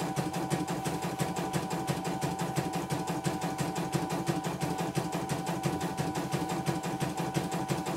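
An embroidery machine stitches with a fast, steady rattling hum.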